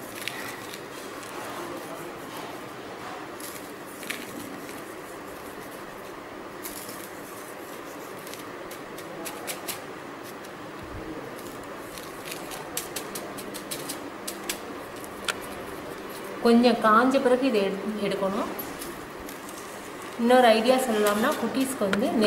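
Fine grains patter softly as fingers sprinkle them onto a surface.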